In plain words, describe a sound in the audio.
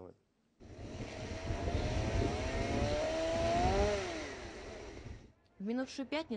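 An engine roars loudly, its pitch rising and then falling.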